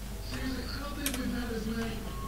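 A menu selection clicks.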